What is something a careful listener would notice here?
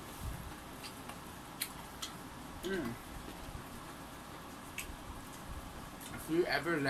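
A young woman chews food noisily close by.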